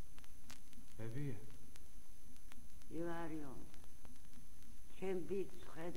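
An elderly man speaks with animation, heard through a record.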